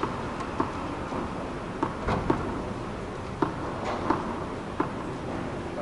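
A tennis ball bounces several times on a hard court.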